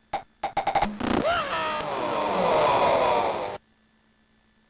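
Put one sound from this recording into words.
A game tune plays falling electronic notes.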